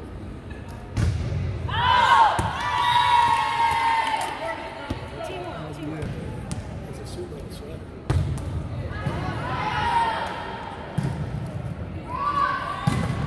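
A volleyball is struck with sharp thuds in an echoing hall.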